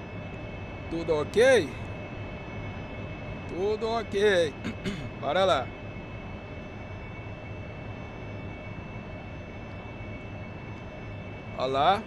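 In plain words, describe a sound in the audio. A jet engine drones, heard from inside the cockpit.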